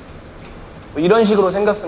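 A young man speaks loudly and clearly, close by.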